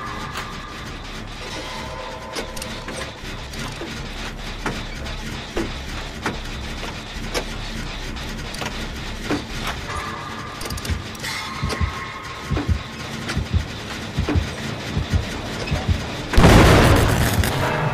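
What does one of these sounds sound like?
A generator engine rattles and clanks under repair.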